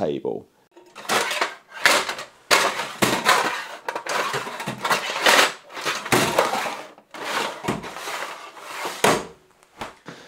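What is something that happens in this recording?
Metal drawers slide open and shut with rattling tools.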